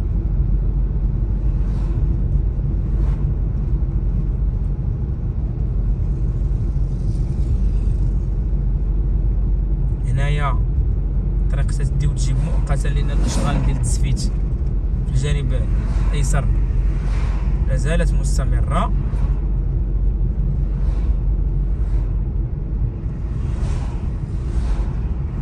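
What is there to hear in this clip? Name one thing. Oncoming vehicles whoosh past close by.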